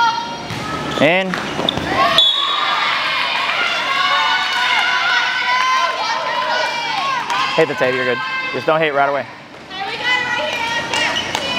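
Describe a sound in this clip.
A volleyball is struck with a thud.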